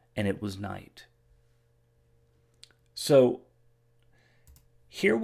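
A middle-aged man speaks calmly into a close microphone, in short bursts.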